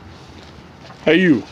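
A child calls out from close by.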